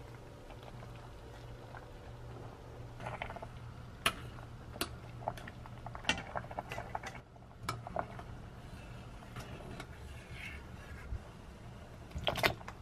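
Hot oil bubbles and sizzles steadily in a pot.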